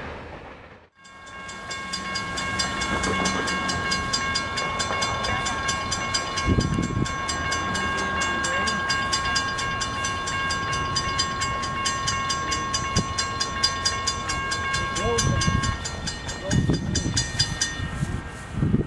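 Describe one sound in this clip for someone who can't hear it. A railway crossing bell rings in a fast, steady beat.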